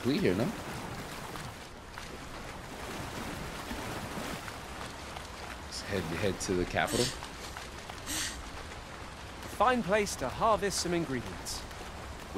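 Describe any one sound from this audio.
Water splashes as feet wade through a shallow stream.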